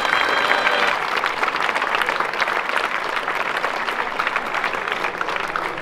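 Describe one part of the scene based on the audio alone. A crowd claps hands steadily outdoors.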